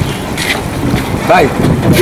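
A fish splashes in water.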